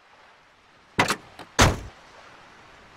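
A car door opens and slams shut.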